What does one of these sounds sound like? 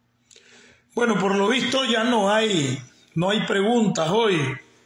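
An elderly man speaks close to a phone microphone, with a melodic, singing voice.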